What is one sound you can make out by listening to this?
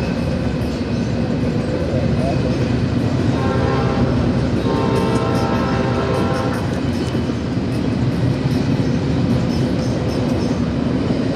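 Train wheels clatter rhythmically over the rail joints.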